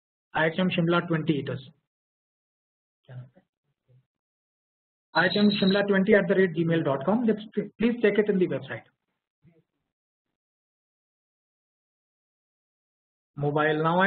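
A middle-aged man speaks calmly through an online call, with pauses.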